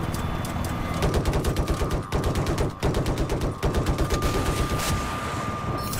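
A helicopter's cannon fires in rapid bursts.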